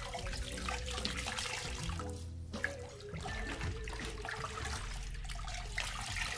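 Water splashes and sloshes in a bucket.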